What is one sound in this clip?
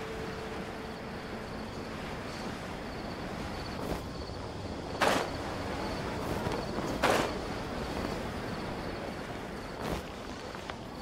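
Wind rushes steadily past a gliding flyer.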